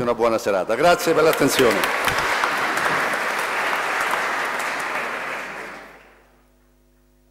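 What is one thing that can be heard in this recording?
An audience applauds loudly, then the applause fades.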